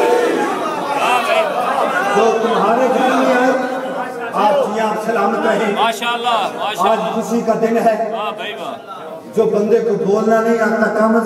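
A man sings through a microphone and loudspeakers.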